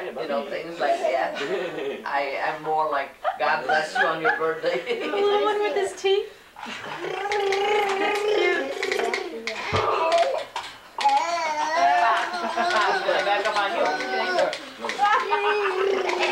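A young woman talks and laughs cheerfully nearby.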